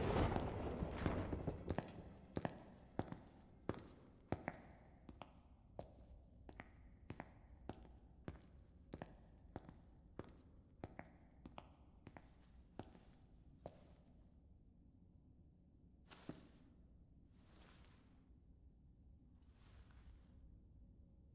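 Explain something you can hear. Heavy boots step slowly on a hard floor, echoing in a large hall.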